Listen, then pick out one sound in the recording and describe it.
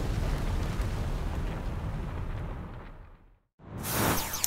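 A deep rumbling roar of collapsing rubble slowly fades away.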